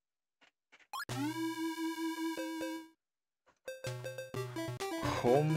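Bleeping electronic game music plays in short bursts.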